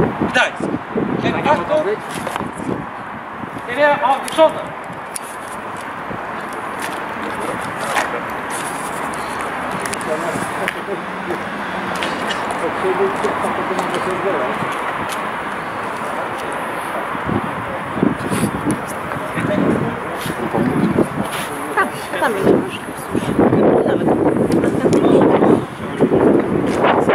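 A man shouts commands loudly outdoors.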